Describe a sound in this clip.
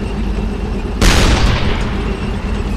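An explosion bursts loudly nearby.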